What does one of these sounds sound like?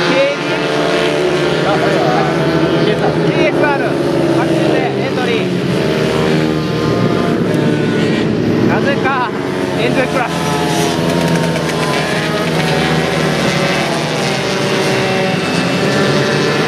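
Small motorbike engines whine and rev as they race past.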